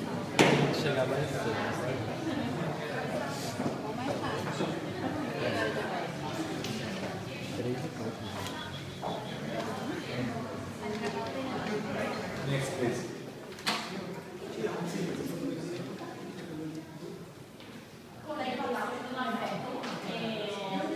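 A crowd of young men and women chatter all around, close by, in a room that echoes.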